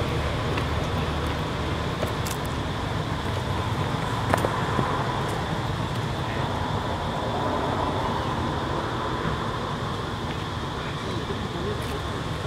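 Footsteps crunch on stone as people walk past close by.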